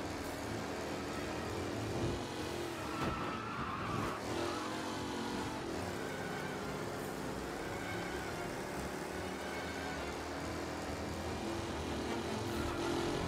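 A vintage race car engine drones steadily, rising and falling in pitch.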